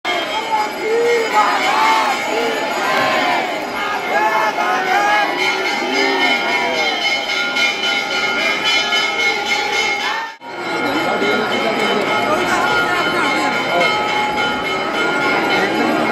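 A large crowd of men and women chants and shouts loudly, close by.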